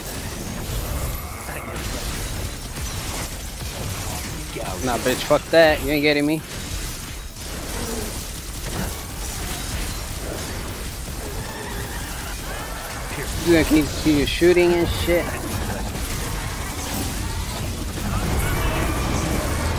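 Lightning crackles and bursts.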